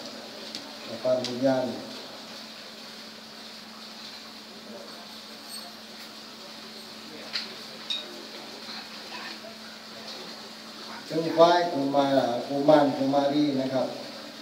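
An older man reads out in a slow chant through a microphone and loudspeakers.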